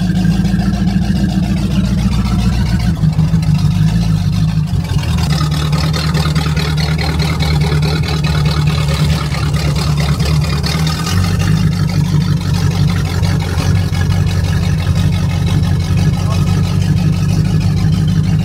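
An old car engine rumbles loudly and steadily close by.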